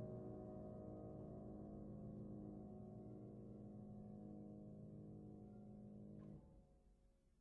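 A piano chord rings out, sustained, then stops abruptly.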